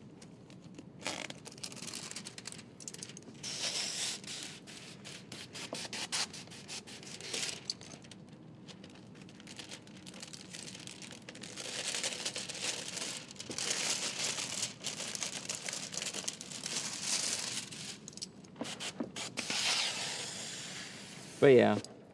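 Plastic film crinkles and rustles as hands handle it.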